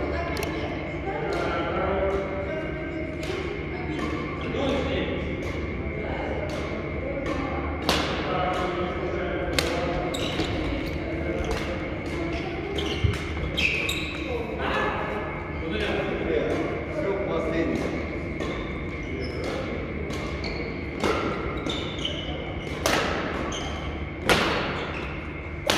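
Shoes squeak and patter on the court floor.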